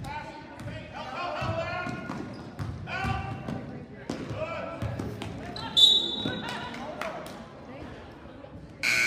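Sneakers squeak on a gym floor.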